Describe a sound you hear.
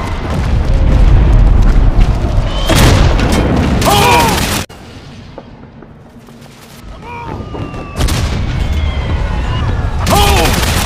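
Battle noise rumbles low and steady.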